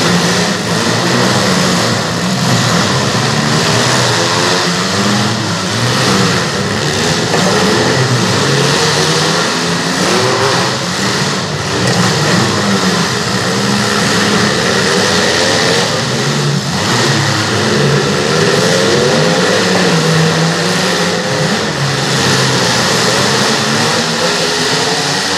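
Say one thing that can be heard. Car engines roar and rev in a large echoing arena.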